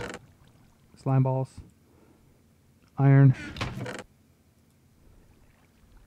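A wooden chest creaks open and shuts.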